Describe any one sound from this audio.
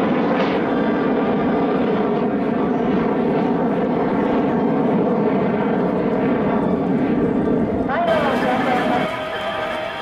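A jet engine roars loudly overhead.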